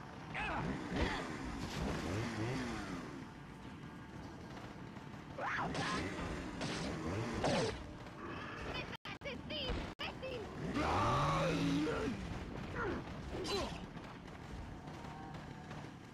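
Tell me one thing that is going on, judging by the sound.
Men shout and grunt loudly nearby.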